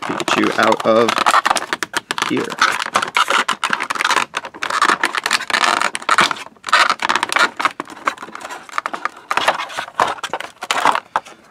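Stiff plastic packaging crinkles and crackles as hands handle it.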